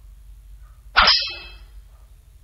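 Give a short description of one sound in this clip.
A game piece clacks down onto a board.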